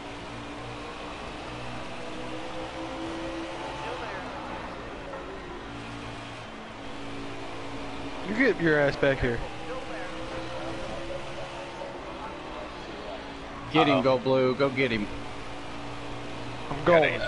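Racing car engines roar steadily at high speed.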